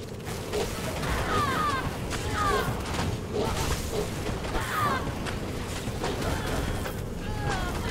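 Magic spells crackle and burst in rapid bursts.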